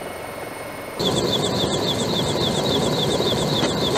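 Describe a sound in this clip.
Helicopter rotors thump rapidly as helicopters fly past.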